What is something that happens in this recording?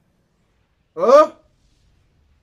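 A young man gasps in surprise.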